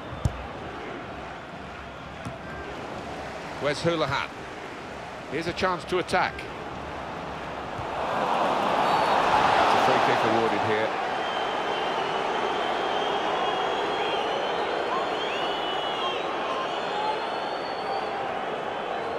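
A large stadium crowd murmurs, then swells into a loud roar and settles back to a steady din.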